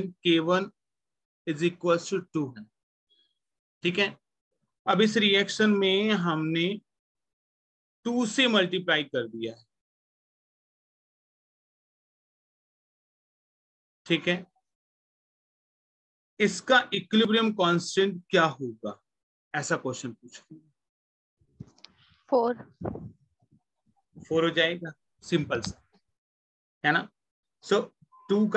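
A young man explains calmly over a close microphone, in bursts with pauses.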